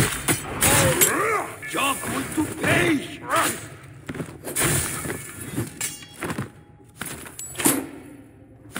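Metal blades clash sharply in a fight.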